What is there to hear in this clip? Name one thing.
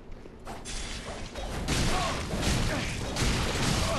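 A magic blast whooshes and crackles.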